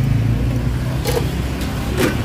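A metal lid clanks down onto a pan.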